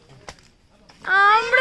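A child calls out loudly outdoors.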